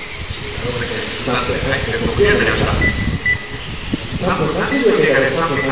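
Small electric racing cars whine as they speed around a track.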